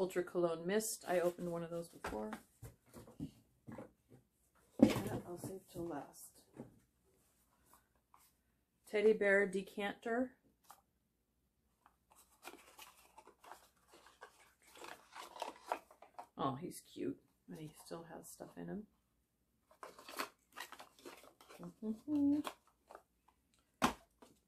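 Paper rustles as items are unwrapped from a cardboard box.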